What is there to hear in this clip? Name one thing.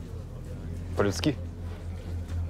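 A second man answers briefly in a low voice.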